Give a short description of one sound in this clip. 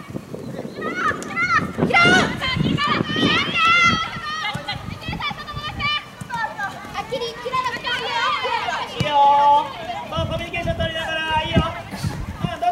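Young women shout and call out to each other on an open field.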